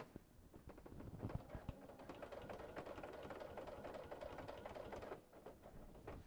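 A sewing machine hums steadily as it stitches.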